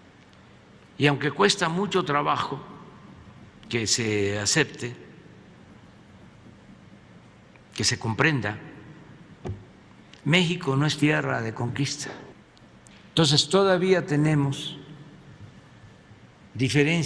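An elderly man speaks calmly and slowly into a microphone, with pauses.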